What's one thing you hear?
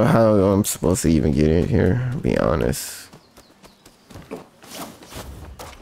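Footsteps run over packed dirt.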